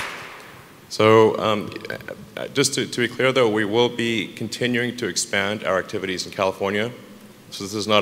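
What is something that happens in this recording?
A man speaks calmly into a microphone, heard over loudspeakers.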